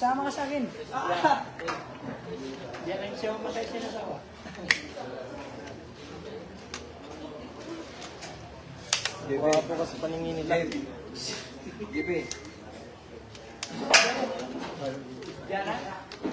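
Men and women in a small crowd chatter and call out nearby.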